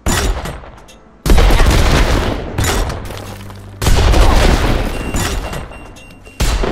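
Explosions boom again and again, each followed by a rumbling fade.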